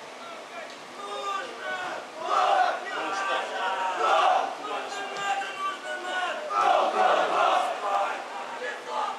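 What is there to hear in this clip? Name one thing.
Young men shout to each other across an open football pitch, heard from a distance.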